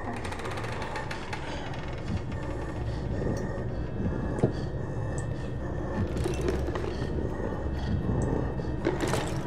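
A man talks quietly into a close microphone.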